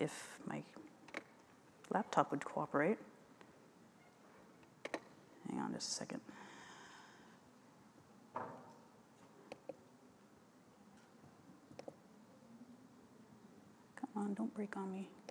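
A woman speaks calmly into a microphone, with long pauses.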